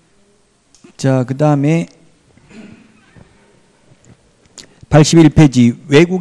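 A middle-aged man speaks with animation into a handheld microphone, loud and close.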